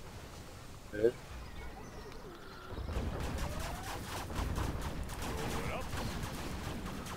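Tank cannons fire with sharp bangs.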